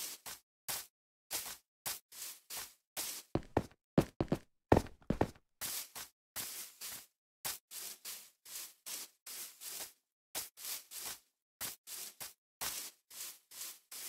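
Footsteps crunch on grass at a steady walking pace.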